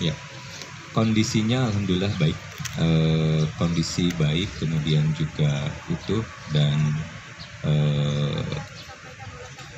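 A man speaks calmly into a microphone outdoors.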